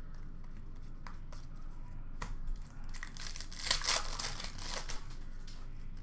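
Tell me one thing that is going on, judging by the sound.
Trading cards rustle and click as hands handle them.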